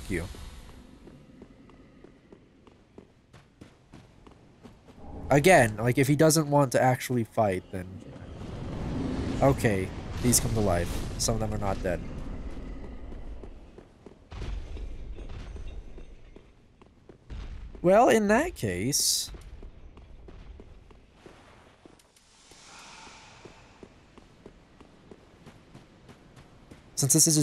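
Armored footsteps clank steadily on stone.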